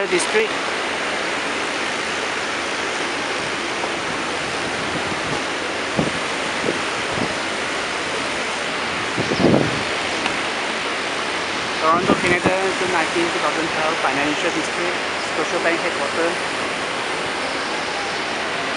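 Traffic hums steadily on a busy city street outdoors.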